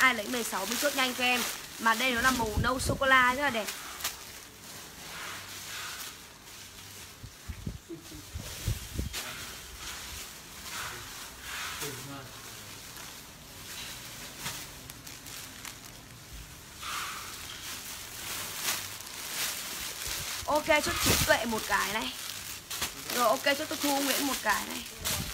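Plastic wrapping crinkles and rustles under handling.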